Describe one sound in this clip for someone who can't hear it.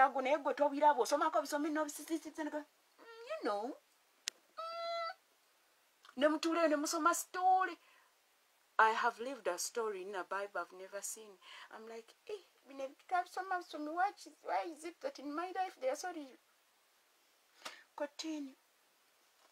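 A middle-aged woman speaks with animation close to the microphone.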